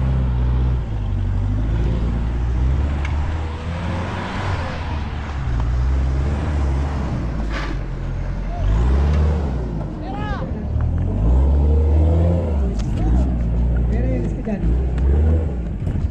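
An off-road truck engine revs loudly, rising and falling.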